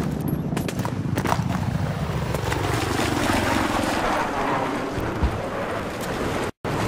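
A helicopter engine roars.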